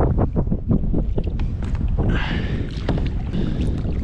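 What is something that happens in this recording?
A paddle splashes in the water.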